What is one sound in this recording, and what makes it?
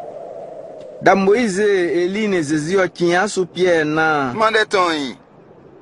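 A man calls out loudly and slowly.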